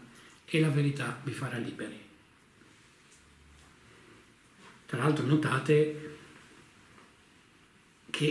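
A middle-aged man speaks animatedly close to the microphone, in short bursts.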